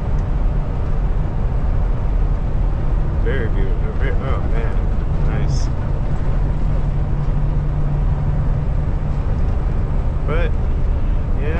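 A truck engine drones steadily with road noise from inside the cab.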